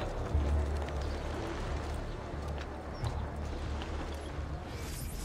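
Footsteps patter quickly across roof tiles.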